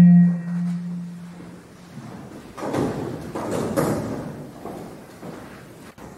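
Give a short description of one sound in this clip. A woman announces through a microphone and loudspeaker in the hall.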